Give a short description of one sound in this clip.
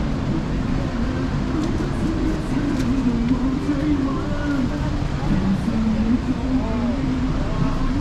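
Men and women talk nearby as they pass on the pavement.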